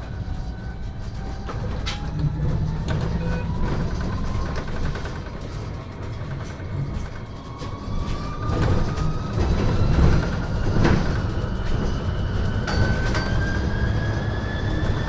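The bus body rattles and clicks over the road.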